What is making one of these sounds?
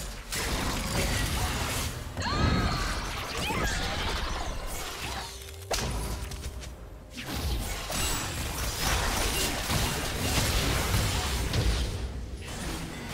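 Clashing hits and blasts ring out rapidly.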